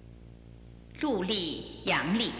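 A woman sings in high, gliding tones close by.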